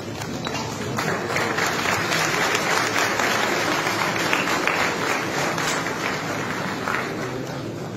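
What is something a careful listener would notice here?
A crowd applauds with steady clapping.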